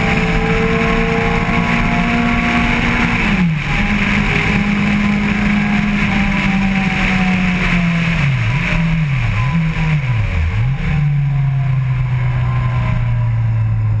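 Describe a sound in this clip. A motorcycle engine roars at high revs, dropping sharply with each downshift.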